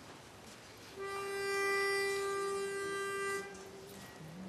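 A pitch pipe sounds a single steady note.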